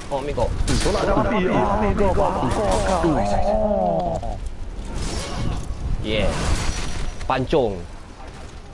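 Men shout and grunt in battle.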